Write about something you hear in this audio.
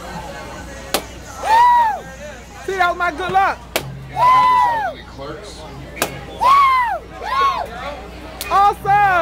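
Balloons pop with sharp bangs.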